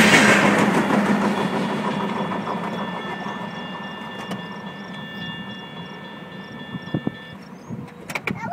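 A crossing bell rings steadily, then stops.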